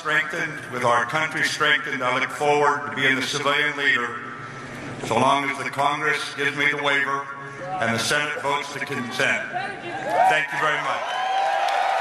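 An elderly man speaks firmly through a microphone and loudspeakers in a large echoing hall.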